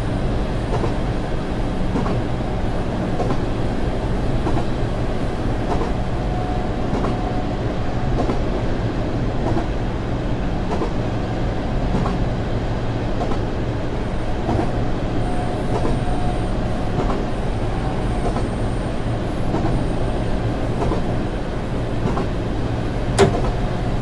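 A train rumbles steadily along the track from inside the cab.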